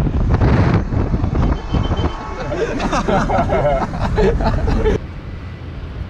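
Road noise roars past a moving car.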